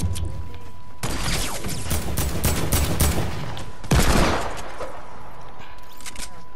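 A gun fires in quick bursts of shots.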